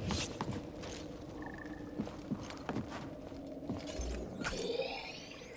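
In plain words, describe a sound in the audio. Footsteps knock on wooden planks.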